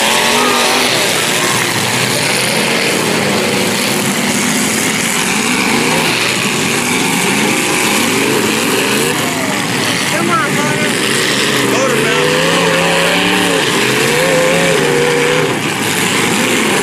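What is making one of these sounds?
Car engines rev and roar loudly outdoors.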